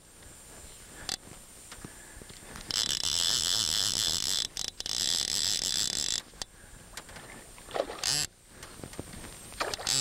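Water ripples and laps gently.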